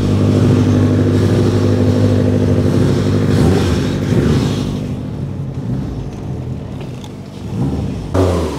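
A sports car engine rumbles loudly at idle, then pulls away.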